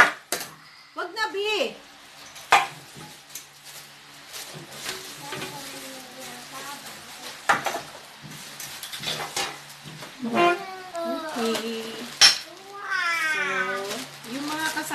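A young girl speaks in a high voice.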